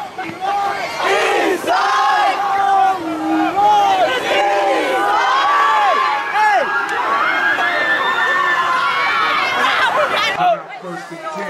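A crowd of young people sings and cheers loudly close by.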